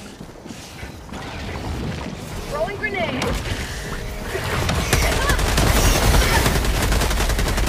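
Gunfire and explosions rumble loudly in a video game.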